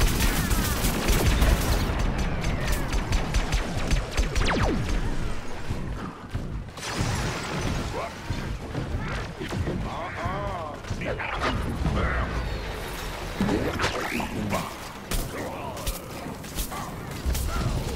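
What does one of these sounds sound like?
Fiery explosions boom and crackle.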